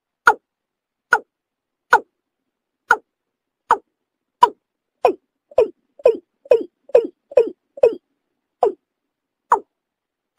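A bird calls with short, sharp notes repeated again and again, quickening in the middle.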